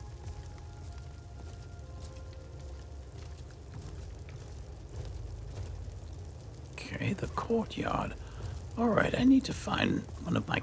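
Armoured footsteps thud softly on stone.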